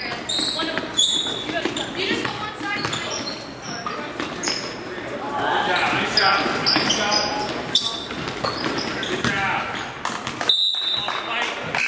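Sneakers squeak sharply on a hard court in a large echoing gym.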